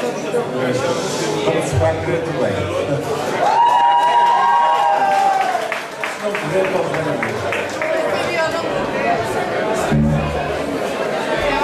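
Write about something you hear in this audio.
A live band plays rock music with electric guitars and drums.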